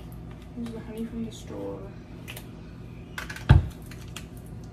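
A lid twists and clicks on a plastic bottle.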